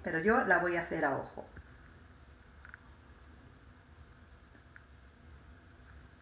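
Lemon juice drips softly into a glass bowl.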